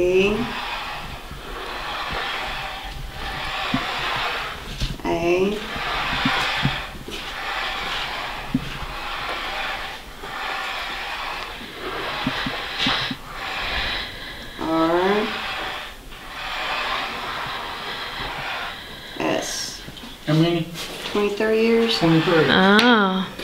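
A wooden planchette slides over a wooden board.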